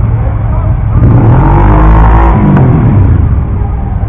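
A motorcycle revs up and pulls away loudly.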